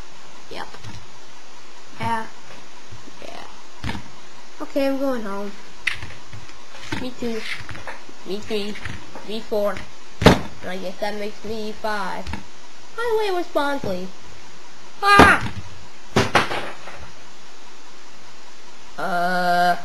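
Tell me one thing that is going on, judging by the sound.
Plastic toy figures knock and clack against a hard tabletop.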